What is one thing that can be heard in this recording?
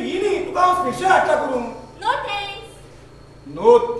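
A young woman speaks loudly.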